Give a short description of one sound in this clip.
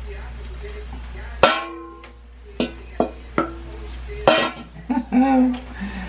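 Sauce pours into a hot pan with a brief sizzle.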